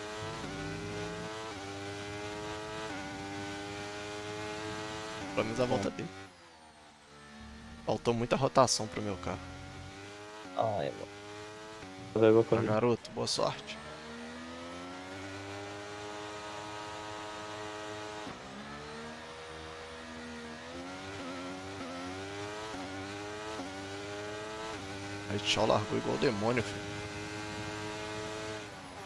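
A racing car engine whines and climbs in pitch through gear changes.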